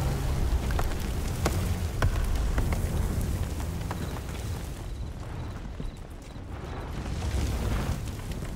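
Gunshots crack sharply in the distance.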